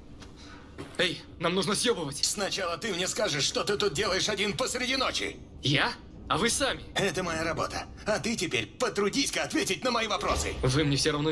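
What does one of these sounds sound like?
A man speaks close by with tense urgency.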